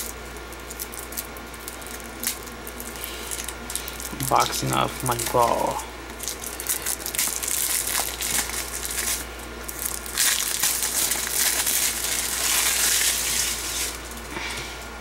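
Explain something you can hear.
Plastic wrap crinkles and rustles as it is peeled off a case.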